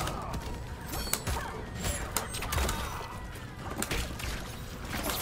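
Punches and blows land with heavy thuds and crunches.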